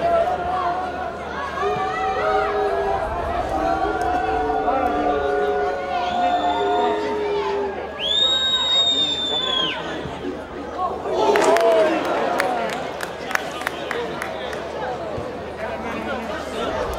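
A crowd of spectators shouts and chants in the distance.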